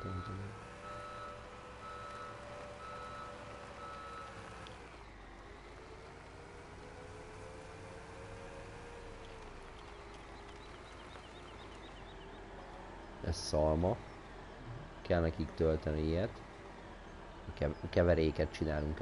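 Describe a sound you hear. A tractor engine hums steadily, rising and falling slightly in pitch.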